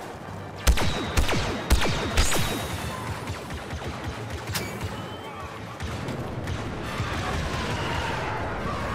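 Blaster shots fire in sharp bursts and echo away.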